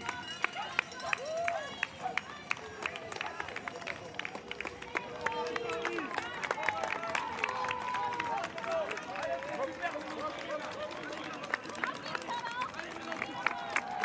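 Many running shoes slap rapidly on asphalt.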